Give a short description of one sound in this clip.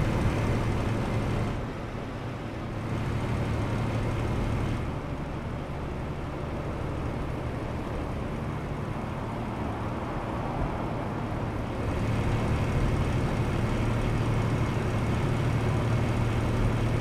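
A diesel truck engine drones while cruising, heard from inside the cab.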